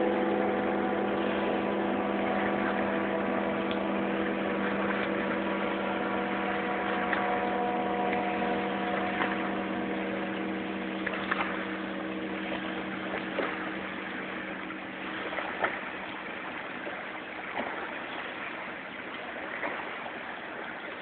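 Small waves lap on a sandy shore.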